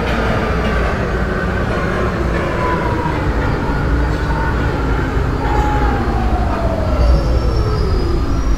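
A subway train rumbles through a tunnel.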